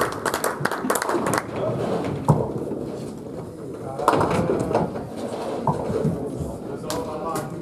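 Balls thud onto the lane as players release them.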